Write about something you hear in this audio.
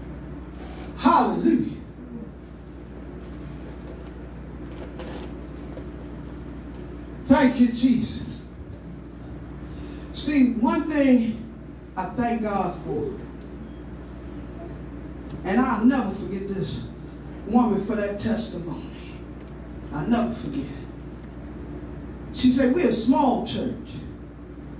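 An elderly woman speaks in short, forceful bursts through a microphone and loudspeaker in an echoing room.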